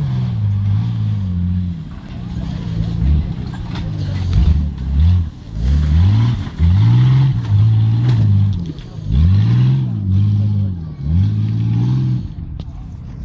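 An off-road 4x4 engine revs hard as it climbs a rough slope.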